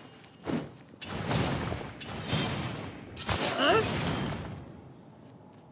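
Fire bursts and roars in a blast.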